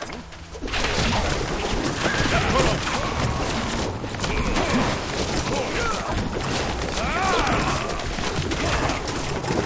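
Soldiers shout and cry out during a battle.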